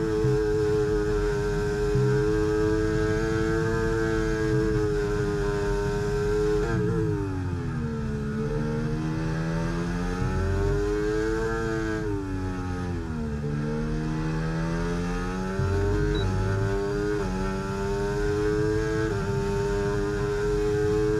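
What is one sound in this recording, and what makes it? A racing car engine screams at high revs, dropping sharply under braking and climbing again through the gears.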